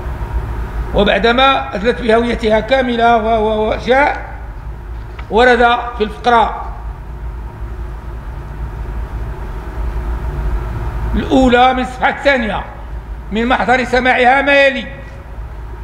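An elderly man speaks calmly into microphones.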